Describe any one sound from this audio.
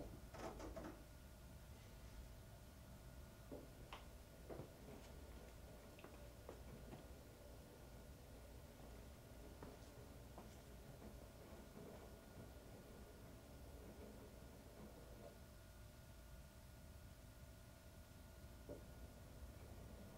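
Wet laundry thumps and sloshes inside a turning drum.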